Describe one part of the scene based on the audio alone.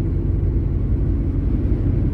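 An oncoming truck rushes past.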